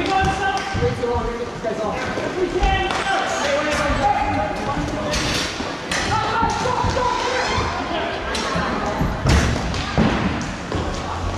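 Skate wheels roll and scrape on the floor of a large echoing hall.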